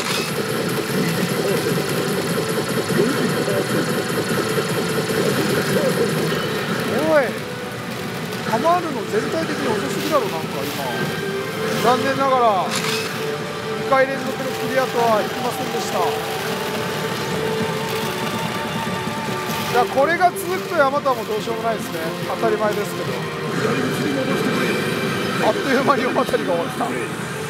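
A pachinko machine plays loud electronic music and chirping sound effects.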